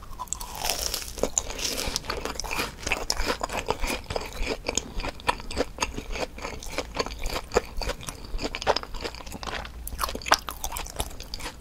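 A woman chews crunchy fried food close to a microphone.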